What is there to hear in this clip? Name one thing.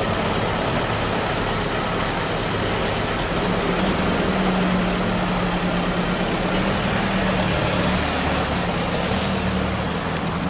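A car drives slowly past close by.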